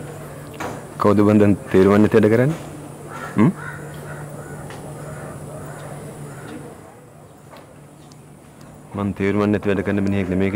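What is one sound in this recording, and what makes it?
A younger man answers with animation, close by.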